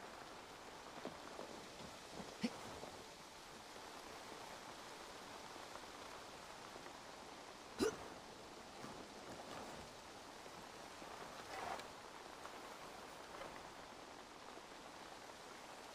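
Footsteps rustle through grass and undergrowth.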